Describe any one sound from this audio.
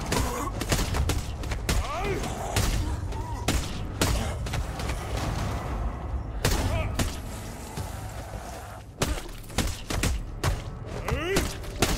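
Heavy blows thud against flesh in a game.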